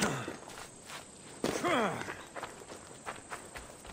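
A man lands heavily with a thud after a jump.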